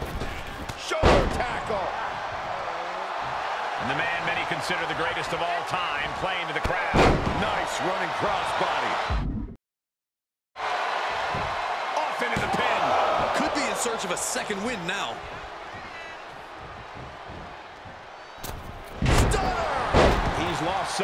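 Heavy bodies slam onto a wrestling mat with loud thuds.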